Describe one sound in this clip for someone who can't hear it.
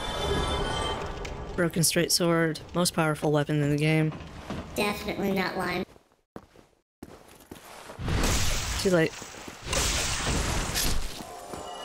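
A sword swings and strikes.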